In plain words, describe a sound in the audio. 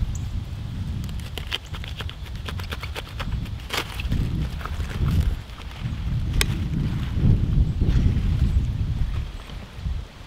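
Knife blades snip through lettuce stems.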